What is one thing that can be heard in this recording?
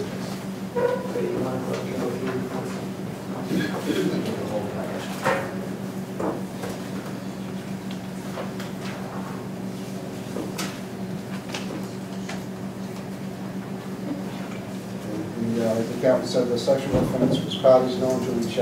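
A man speaks calmly in a room, heard from a distance.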